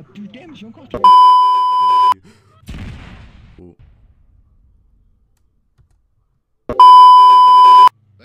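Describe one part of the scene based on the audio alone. A loud, steady test tone beeps.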